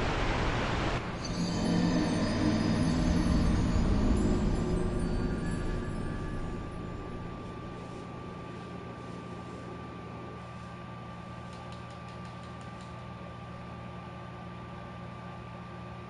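A deep, dark musical chord swells and slowly fades away.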